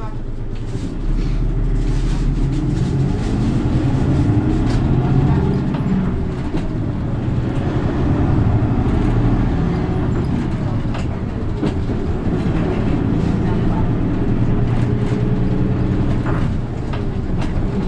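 A bus engine revs and grows louder as the bus pulls away.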